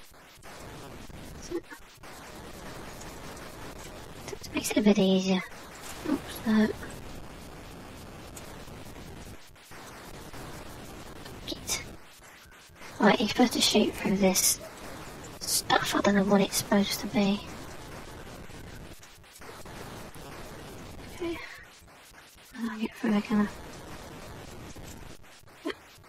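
A chiptune helicopter hums steadily.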